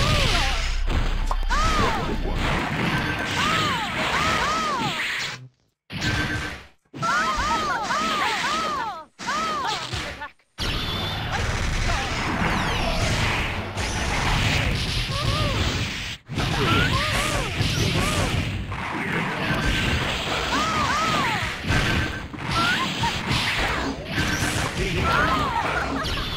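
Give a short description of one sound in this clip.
Video game punches and blasts hit again and again.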